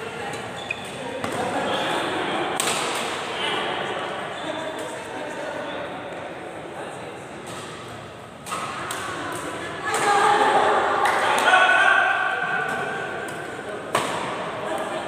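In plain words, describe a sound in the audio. Badminton rackets strike a shuttlecock in an echoing sports hall.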